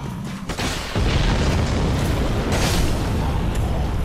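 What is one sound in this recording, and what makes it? Metal swords clash and clang.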